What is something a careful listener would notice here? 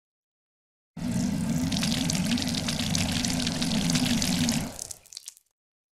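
A video game's power-up effect whirs and crackles steadily as points drain away.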